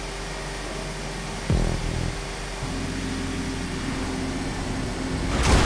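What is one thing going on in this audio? A truck engine drones steadily, echoing in a tunnel.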